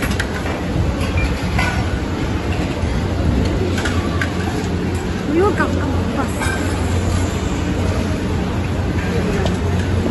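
A metal ladle clinks against steel plates.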